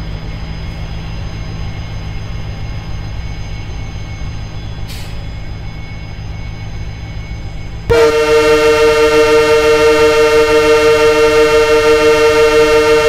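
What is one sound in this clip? A diesel train rumbles steadily past on the tracks.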